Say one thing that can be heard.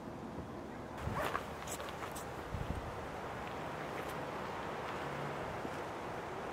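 Footsteps scrape and crunch on rock.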